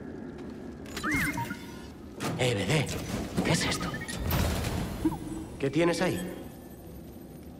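A metal chest creaks and clanks open.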